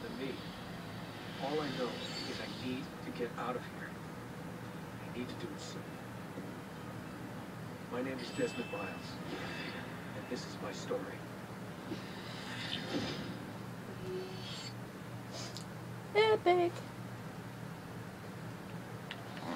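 A film soundtrack plays from a television across the room.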